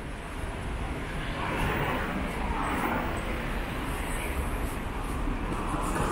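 Electric scooters whir past nearby.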